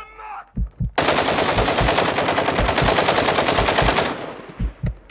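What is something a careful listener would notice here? A rifle fires a long rapid burst at close range.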